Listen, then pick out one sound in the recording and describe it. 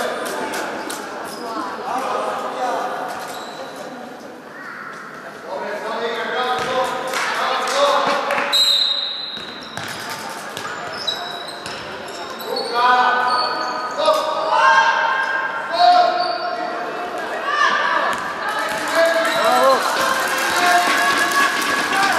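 Girls shout and call out to each other in a large echoing gym.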